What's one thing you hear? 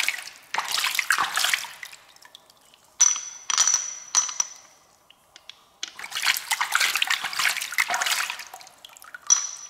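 Wet hands squelch through soft mussel flesh.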